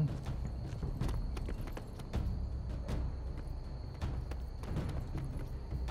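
Footsteps run on stone.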